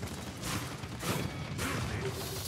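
A video game explosion bursts with a sharp crack.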